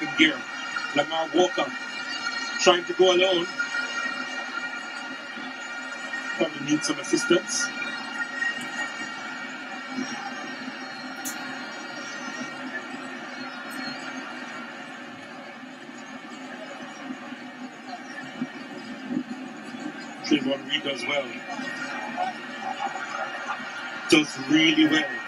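A large stadium crowd murmurs and cheers steadily outdoors.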